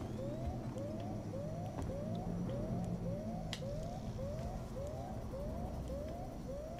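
A motion tracker beeps with quick rising chirps at a steady, fast pace.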